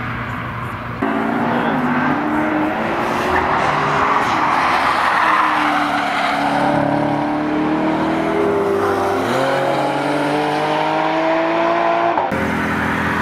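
A sports car engine revs high and rises in pitch through the gears.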